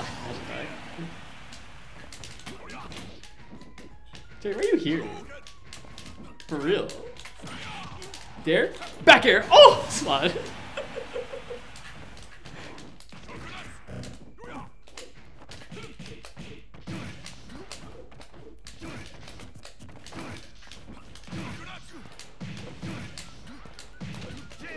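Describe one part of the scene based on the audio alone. Game fighters clash with quick hits and whooshes.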